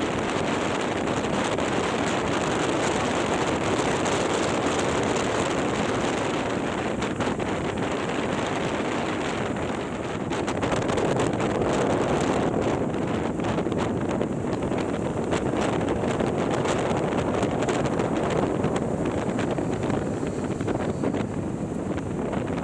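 Wind rushes loudly over a motorcycle rider's microphone.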